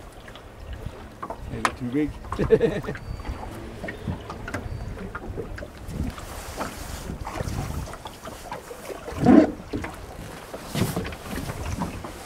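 Small waves lap and slosh on open water.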